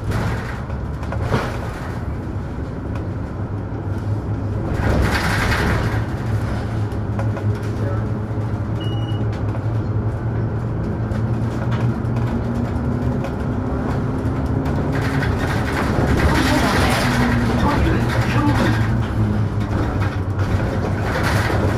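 A bus engine hums steadily and rises in pitch as the bus speeds up.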